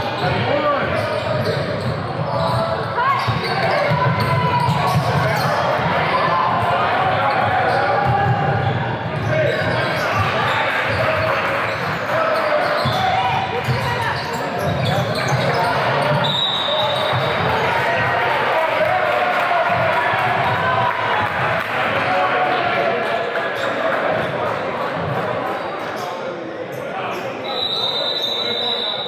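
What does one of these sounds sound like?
Voices of players and spectators echo through a large gym.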